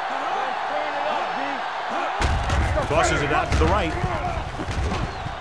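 A large crowd cheers and roars in a stadium, growing louder.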